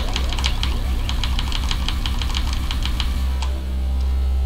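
Keyboard keys clatter under quick, rhythmic taps.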